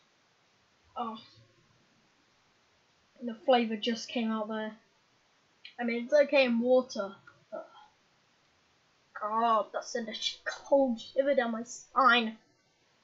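A boy talks casually close to a microphone.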